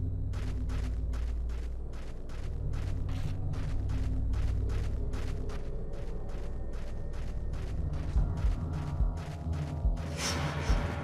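Footsteps tap steadily on a hard path.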